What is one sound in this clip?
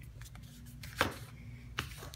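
A plastic packet crinkles under a hand.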